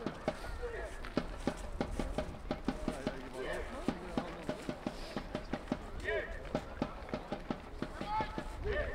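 Men shout in the distance outdoors.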